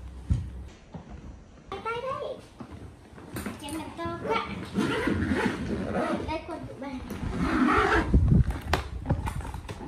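A hard suitcase thumps and scrapes on a wooden floor.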